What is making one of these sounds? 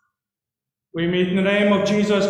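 A man speaks calmly through a microphone over an online call.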